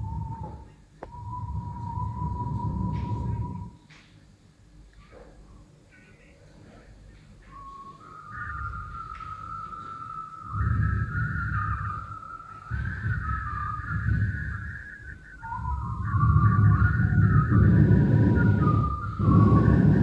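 A low electronic rumble swells and fades in waves.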